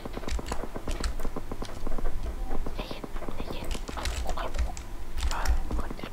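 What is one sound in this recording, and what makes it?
A rifle fires rapid, sharp shots.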